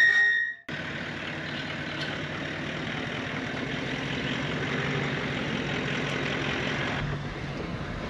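A vehicle engine rumbles as it approaches on a dirt track.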